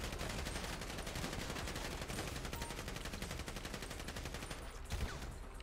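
Guns fire in rapid, continuous bursts.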